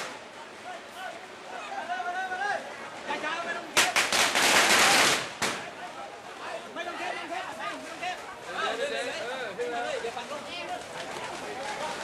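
A crowd of men shouts and calls out loudly outdoors.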